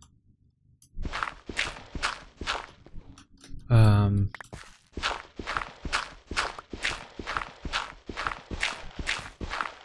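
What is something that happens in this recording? A shovel digs into dirt with quick, repeated scrapes.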